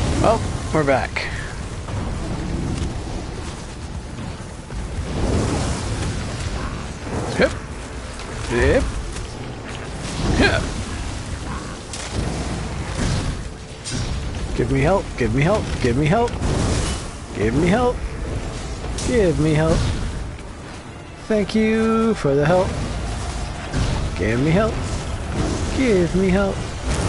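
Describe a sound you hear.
Fiery spells burst and roar in a fight.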